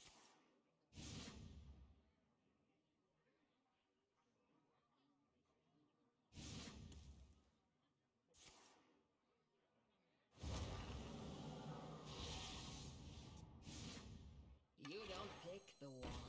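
Magical game sound effects whoosh and shimmer in short bursts.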